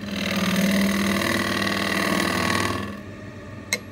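A gouge scrapes loudly against spinning wood.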